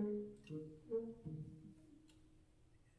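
A jazz band holds its final notes, which then die away.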